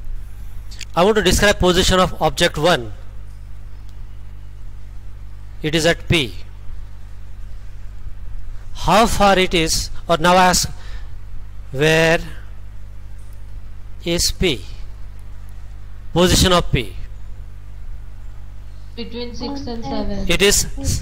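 A man speaks calmly in short phrases through an online call.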